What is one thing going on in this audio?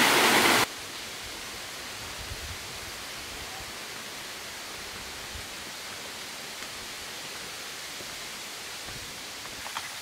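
Footsteps thud softly on stone steps.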